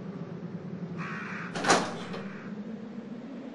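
A heavy metal door creaks and grinds open.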